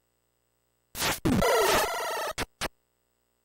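A harsh electronic noise sweeps down during a fight.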